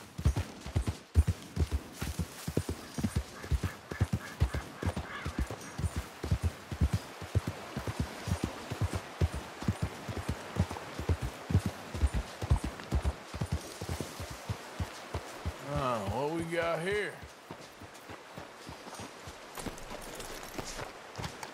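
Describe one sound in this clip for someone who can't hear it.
A river rushes nearby.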